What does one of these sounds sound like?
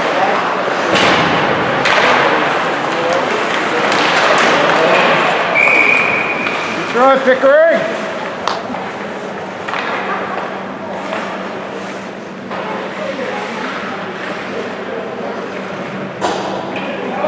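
Hockey sticks clack against a puck.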